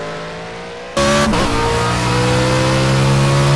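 A racing car engine drones loudly up close, its pitch climbing slowly after a quick gear change.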